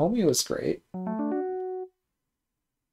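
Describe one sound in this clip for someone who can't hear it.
A short electronic chime plays a quick run of notes.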